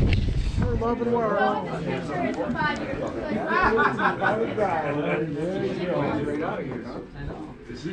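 A crowd of men chatter indoors.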